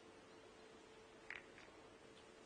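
Snooker balls click against each other on the table.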